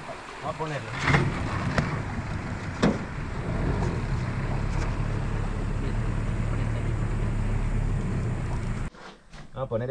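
Water rushes past a moving boat with a low steady rumble.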